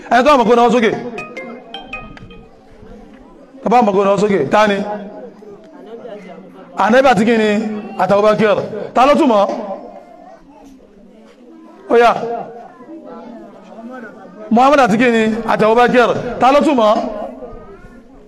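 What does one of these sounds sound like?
A young man sings loudly and with feeling into a microphone, in bursts with pauses between.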